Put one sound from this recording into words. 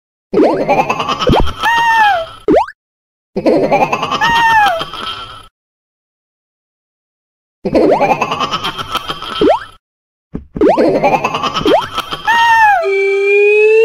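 Bouncy electronic game music plays in short bursts with gaps of silence.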